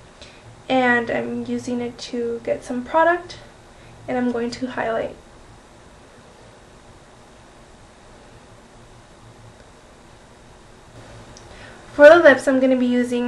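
A young woman talks calmly and closely into a microphone.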